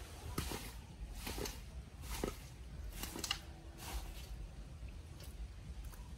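Water drips and plops into a shallow puddle.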